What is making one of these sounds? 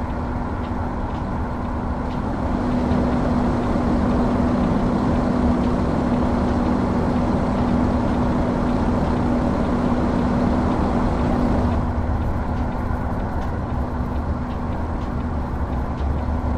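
A truck engine rumbles steadily as it drives.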